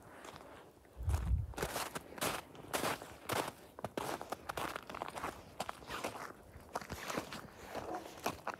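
Footsteps crunch on snow at a steady walking pace.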